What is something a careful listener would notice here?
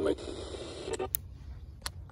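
A radio knob clicks as it is turned.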